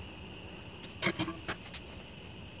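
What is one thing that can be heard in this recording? A glass coffee maker clinks as it is set down on a metal stove grate.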